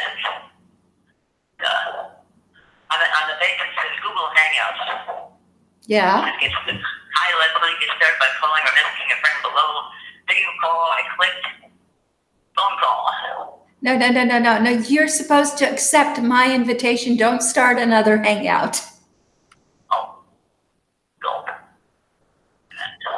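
A middle-aged woman talks calmly over an online call.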